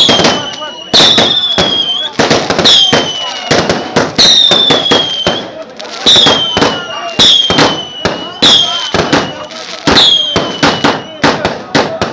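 Fireworks whistle as they shoot up, each whistle dropping slightly in pitch.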